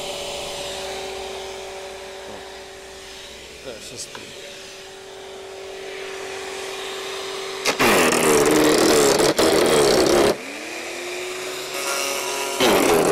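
An electric garden shredder motor hums steadily.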